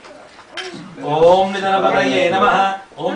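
A man chants prayers aloud, close by.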